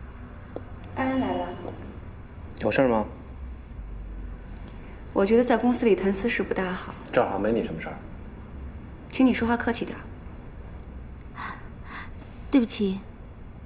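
A young woman speaks softly in short replies, close by.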